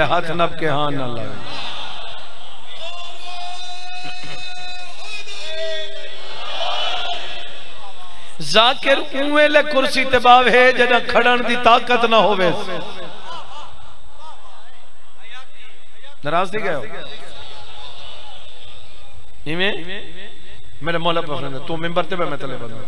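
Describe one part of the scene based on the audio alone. A man recites in a loud, emotional chanting voice through a microphone, echoing in a large space.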